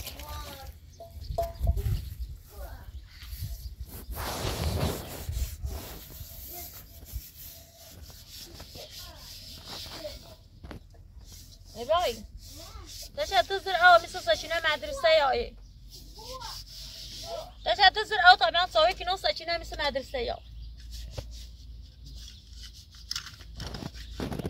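A woman scrubs a metal pot with a scraping, rubbing sound.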